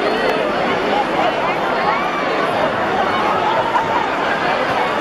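Young girls speak loudly in a large echoing hall.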